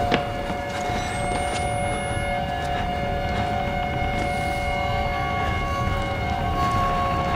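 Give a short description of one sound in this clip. Footsteps thud on hard steps.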